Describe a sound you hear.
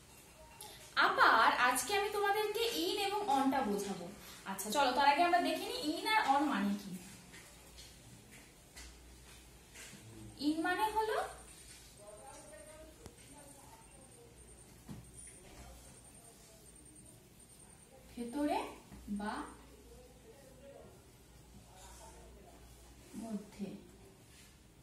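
A young woman speaks clearly and calmly close by, as if teaching.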